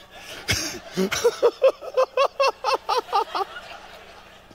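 An audience laughs together.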